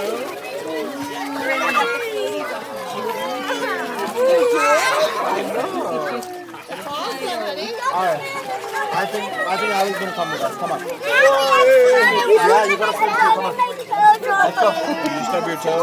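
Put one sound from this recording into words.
Water splashes as people move in a pool.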